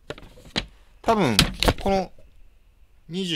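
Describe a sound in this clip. A child speaks excitedly close by.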